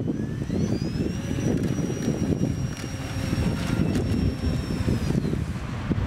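Water splashes and sprays behind a model plane's floats.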